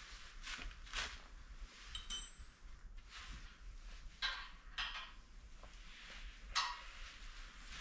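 Metal tools clink and scrape against metal parts.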